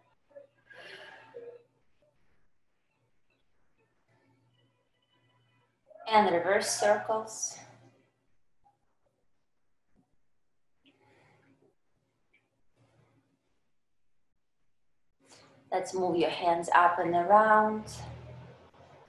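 A woman speaks calmly, instructing, heard through an online call.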